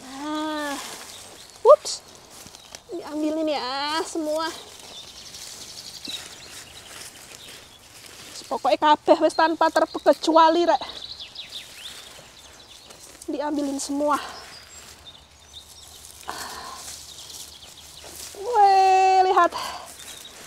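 Leek leaves rustle as they are handled.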